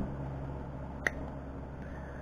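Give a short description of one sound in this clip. Pliers snip through thin metal wire with a sharp click.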